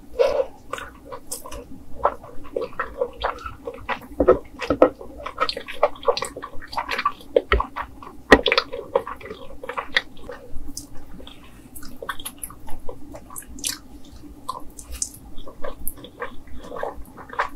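A woman chews and smacks her lips loudly and close up.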